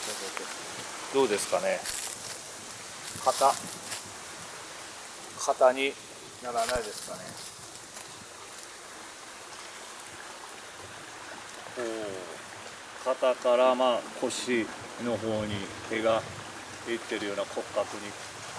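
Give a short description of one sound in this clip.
An older man speaks close by, calmly.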